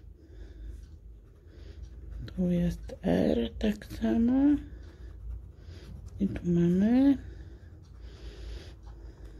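A hard tip scratches across a paper card.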